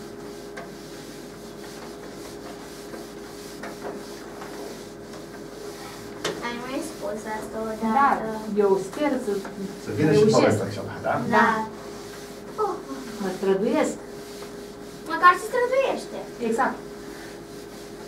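A cloth rubs across a chalkboard.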